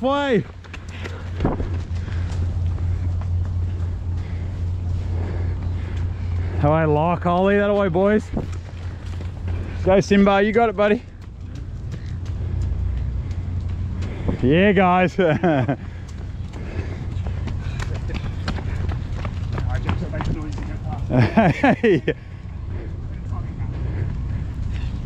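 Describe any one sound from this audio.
Footsteps run on a paved path.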